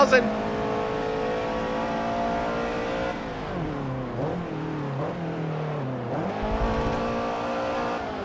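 A car engine roars at high revs, drops in pitch while braking, then revs up again.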